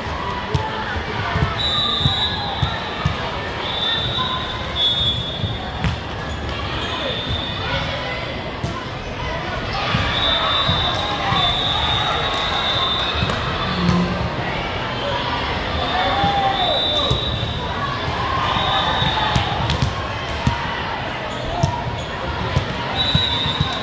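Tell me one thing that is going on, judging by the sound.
Many voices of players and spectators chatter and call out in a large echoing hall.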